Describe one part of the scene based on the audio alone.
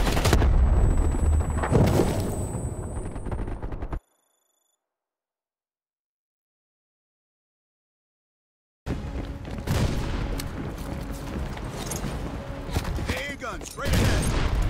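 Gunshots crack and boom in a noisy battle.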